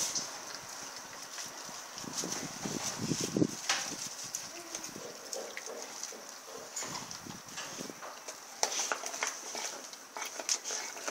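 A dog licks and gnaws at a lump of raw meat close by.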